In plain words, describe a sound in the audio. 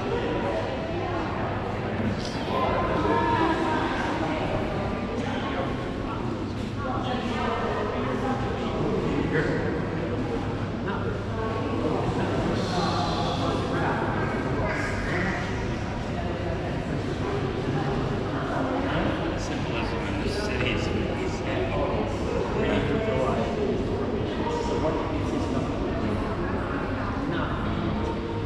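A crowd of visitors chatters in a large echoing hall.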